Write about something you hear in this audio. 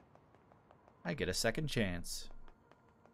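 A young man speaks briefly with animation into a close microphone.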